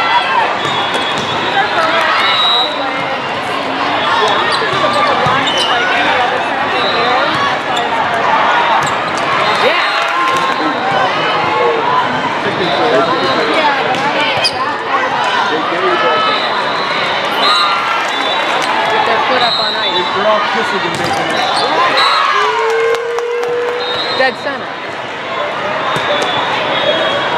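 A large crowd chatters and calls out in a big echoing hall.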